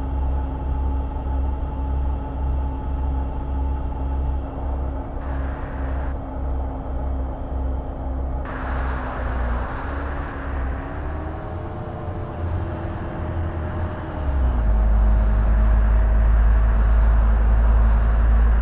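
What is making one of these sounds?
Tyres roll on a road with a rushing noise.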